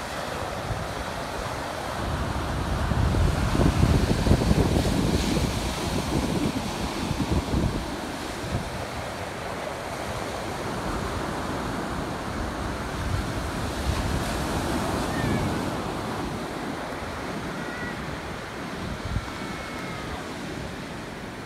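Ocean waves crash and wash onto the shore.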